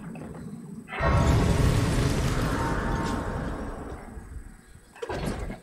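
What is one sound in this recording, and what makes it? A bright shimmering chime swells up and slowly fades.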